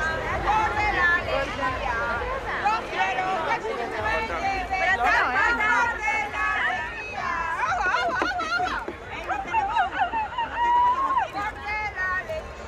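A crowd of adults and children chatter and call out close by, outdoors.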